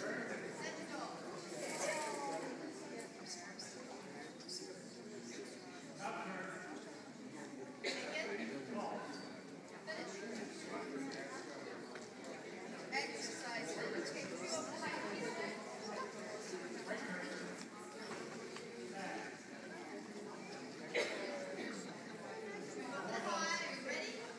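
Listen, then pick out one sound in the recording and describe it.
Adults talk at a distance in a large echoing hall.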